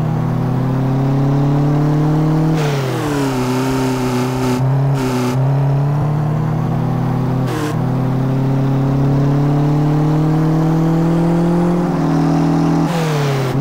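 A car engine revs high, rising in pitch and dropping as gears shift.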